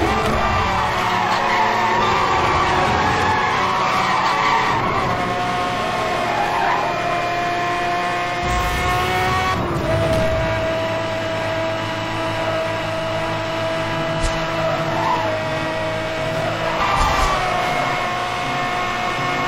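A sports car engine roars steadily at high speed.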